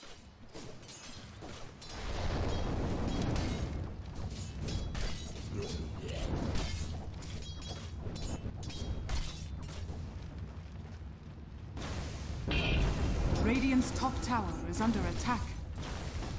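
Magic blasts and weapon strikes clash in a fast battle.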